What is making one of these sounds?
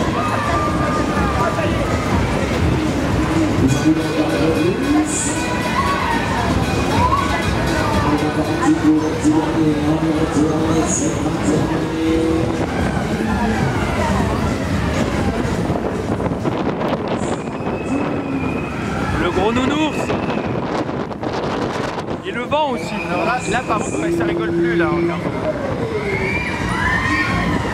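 A fairground ride whirs and rumbles as it spins.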